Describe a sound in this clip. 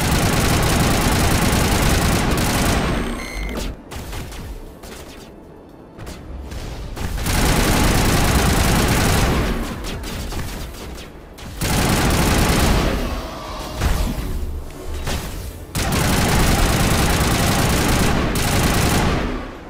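An energy blast crackles and bursts.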